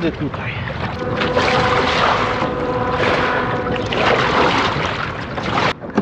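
A paddle splashes through water.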